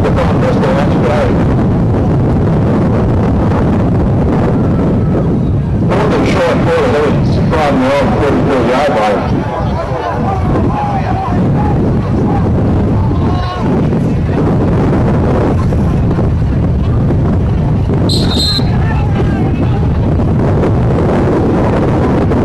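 A crowd of players cheers and shouts outdoors.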